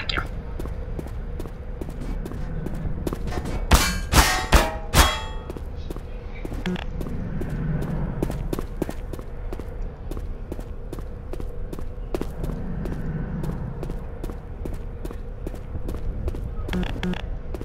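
Footsteps tread steadily across a hard floor.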